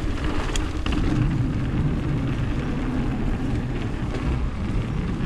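Bike tyres thud over wooden boardwalk planks.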